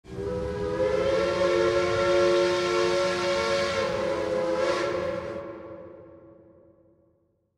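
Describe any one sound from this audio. A steam train whistle blows long and steady, then fades away.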